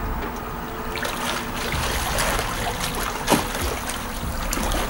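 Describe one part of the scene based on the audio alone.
Water splashes as a swimmer swims.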